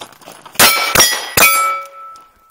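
Three gunshots crack in quick succession outdoors.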